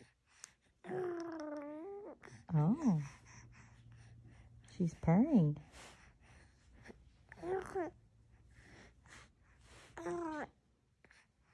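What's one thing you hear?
A baby coos and babbles softly close by.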